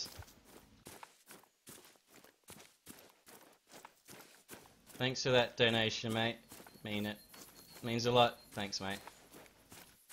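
Footsteps rustle through dry leaves and tall grass.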